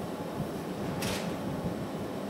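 Metal tongs clink down onto a metal rest.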